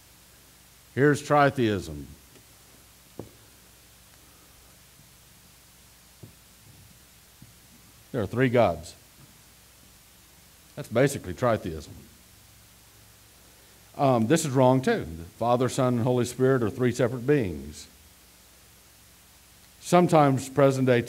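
A middle-aged man speaks with animation through a head microphone, with pauses.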